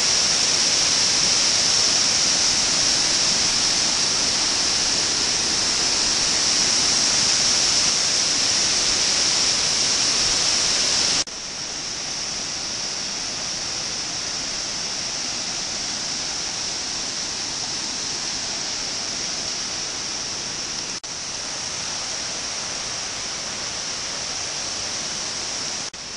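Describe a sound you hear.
A waterfall roars steadily, loud and close, with rushing water throughout.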